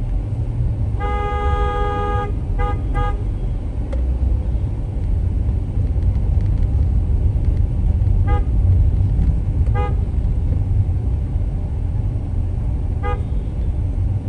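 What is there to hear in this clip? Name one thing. Vehicle horns honk nearby in short bursts.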